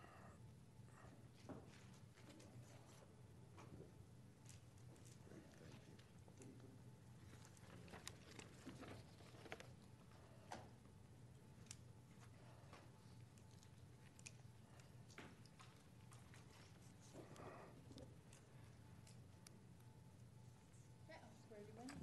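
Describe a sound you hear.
Papers rustle and shuffle close by.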